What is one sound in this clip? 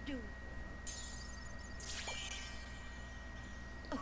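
A magical shimmering sparkle chimes.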